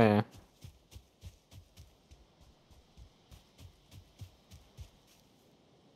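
Footsteps thud softly on soft ground at a steady walking pace.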